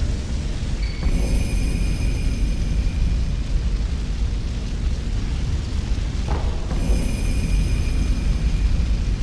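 A bright shimmering chime rings out and fades.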